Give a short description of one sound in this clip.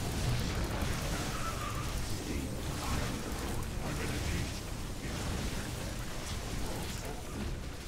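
Explosions rumble in a battle.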